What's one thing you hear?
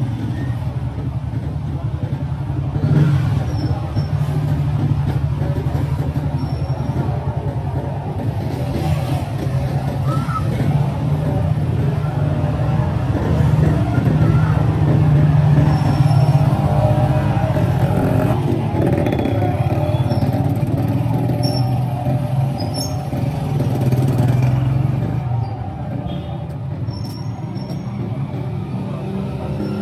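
Small motorcycle engines hum and buzz past on a busy street.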